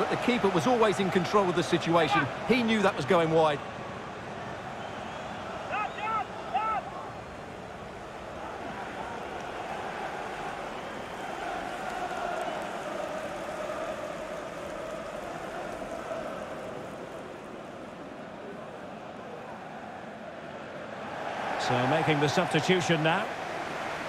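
A crowd in a stadium murmurs and roars steadily in the background.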